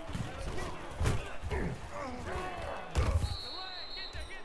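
Football players collide in a tackle with heavy thuds.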